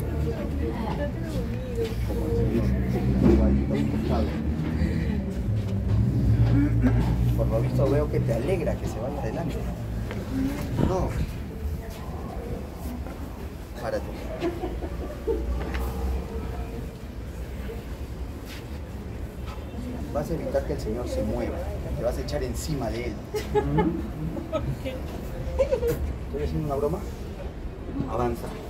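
Several men and women murmur and talk quietly nearby.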